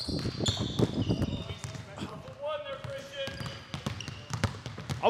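A basketball bounces on a wooden court in an echoing gym.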